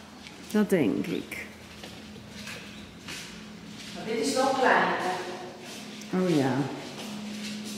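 A young woman talks with animation in an echoing room.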